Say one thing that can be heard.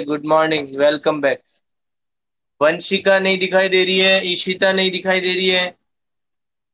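A man speaks calmly, close to a phone microphone.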